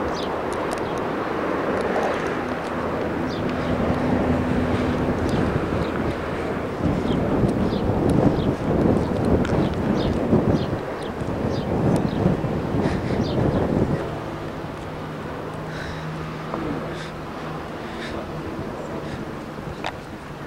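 Wind rumbles and buffets outdoors, gusting hard and then easing.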